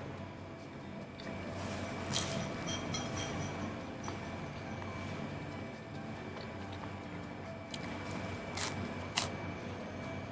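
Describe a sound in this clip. A man chews and eats crunchy bread close by.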